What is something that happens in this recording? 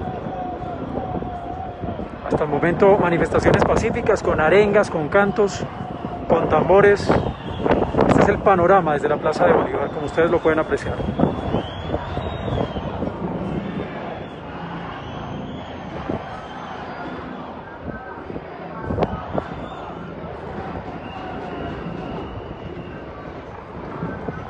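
A crowd murmurs steadily across a wide open square.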